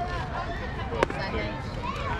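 A bat sharply knocks a ball once.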